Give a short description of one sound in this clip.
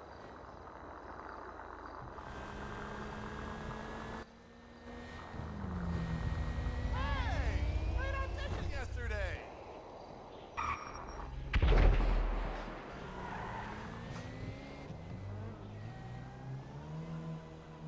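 A car engine revs and hums as the car drives.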